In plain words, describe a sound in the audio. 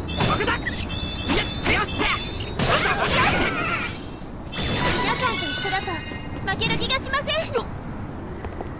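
Magic blasts crackle and blows thud in quick succession.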